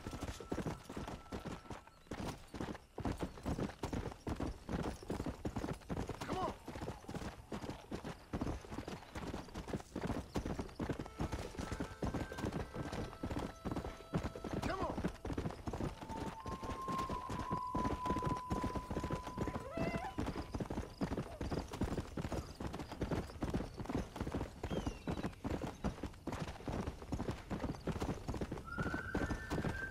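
Horse hooves gallop fast and steadily over a dirt trail.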